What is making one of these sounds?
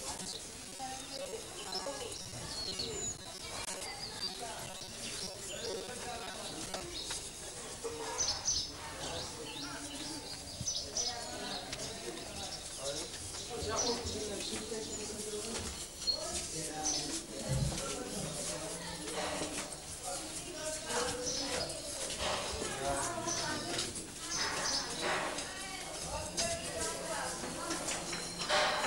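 Several men talk nearby.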